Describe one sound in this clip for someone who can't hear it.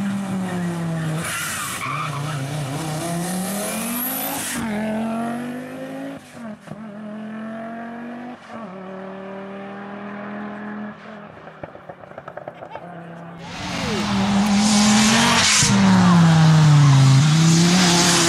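A turbocharged five-cylinder Audi quattro rally car accelerates hard through the gears.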